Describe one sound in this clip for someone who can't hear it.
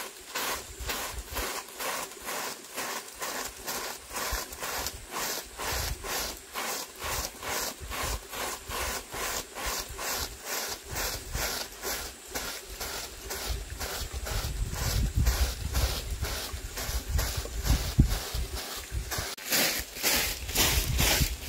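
A broom sweeps a dirt path with quick, regular scratchy strokes.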